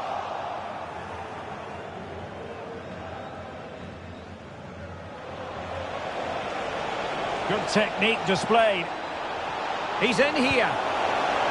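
A large crowd roars steadily in a stadium, swelling louder toward the end.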